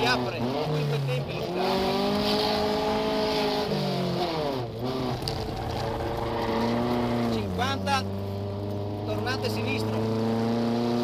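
A rally car engine revs hard, rising and falling as the gears change.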